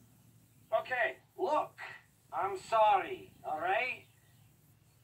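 A man speaks apologetically in a deep, gruff voice.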